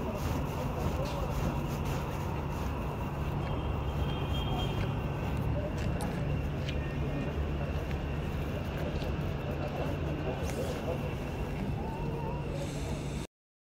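A crowd of men talks and murmurs outdoors at a distance.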